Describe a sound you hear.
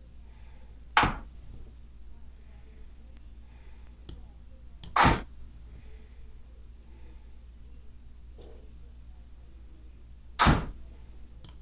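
A chess move sound clicks sharply a few times.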